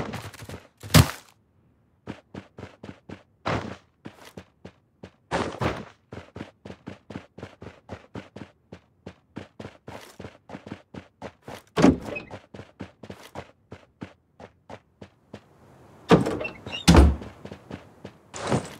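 Quick footsteps run across hard ground and wooden floors.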